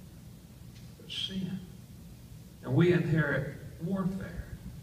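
An elderly man speaks with animation in a large, echoing room.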